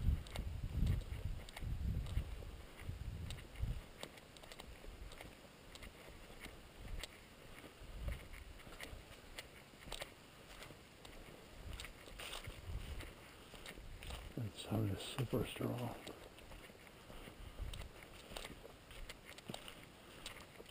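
Footsteps crunch on dry leaves and gravel.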